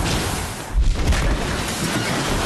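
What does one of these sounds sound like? Train cars crash and rumble heavily.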